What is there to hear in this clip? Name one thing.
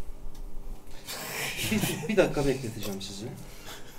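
Several men laugh together close by.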